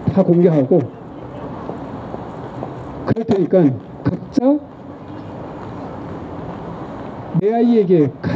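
An older man speaks calmly into a microphone, heard through a loudspeaker, with pauses between phrases.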